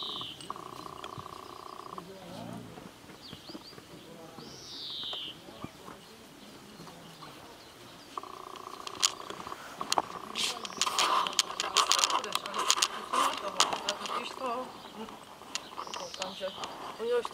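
Puppies scuffle and tumble playfully on grass.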